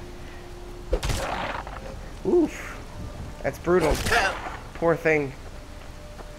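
Wolves snarl and yelp sharply.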